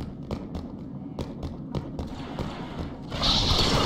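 A blaster rifle fires in quick sharp shots.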